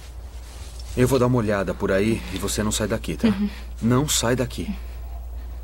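A man speaks quietly up close.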